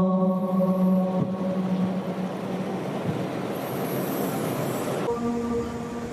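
A man chants a long, melodic call through a microphone, echoing in a large hall.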